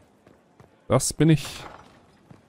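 A heavy wooden door swings open with a thud.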